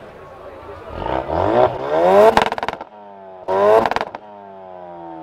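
A car engine revs in short, sharp bursts.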